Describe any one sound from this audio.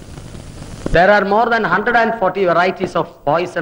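A middle-aged man speaks firmly and with animation to a group.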